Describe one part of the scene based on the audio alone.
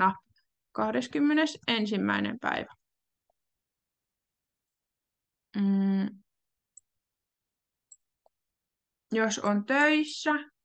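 A young woman speaks calmly, heard through an online call, with pauses.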